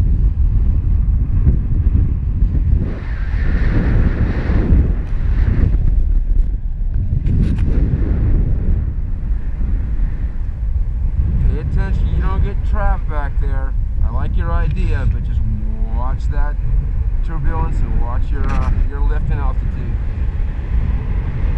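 Wind rushes and buffets loudly throughout, as if outdoors high in the air.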